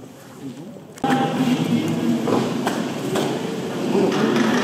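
A crowd of people murmur and talk in an echoing room.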